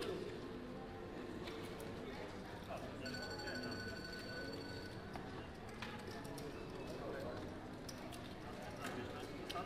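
Gaming chips click and clatter as they are stacked and pushed.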